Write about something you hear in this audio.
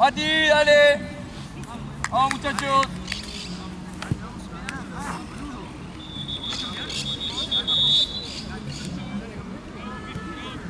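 Young men shout and call out across an open outdoor field.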